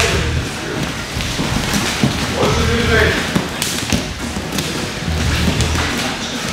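Bare feet shuffle and thud on padded mats.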